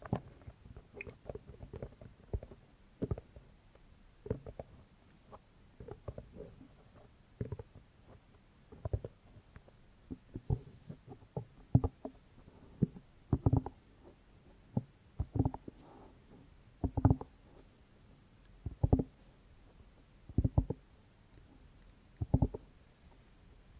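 Fingers rub and tap on a microphone's covers.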